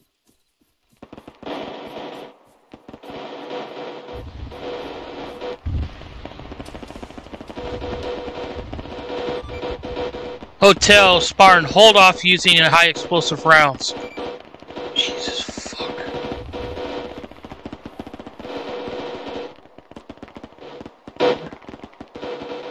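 Rapid gunfire crackles in the distance.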